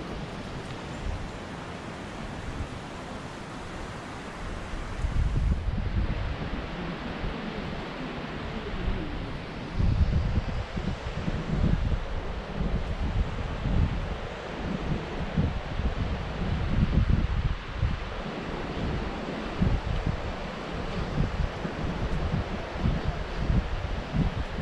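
Wind gusts and rumbles outdoors.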